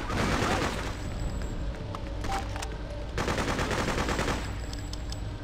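A heavy metal object crashes and tumbles with a loud rumble.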